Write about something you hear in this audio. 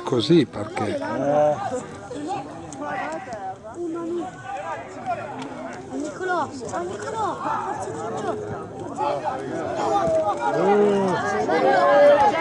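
Men shout and call to each other across an open field outdoors.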